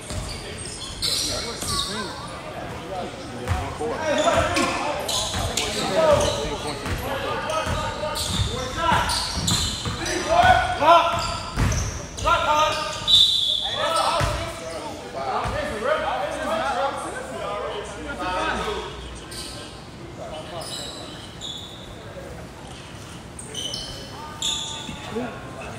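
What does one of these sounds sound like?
Spectators talk and call out in an echoing hall.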